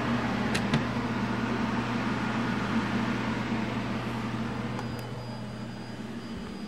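An aircraft engine drones steadily inside the cabin.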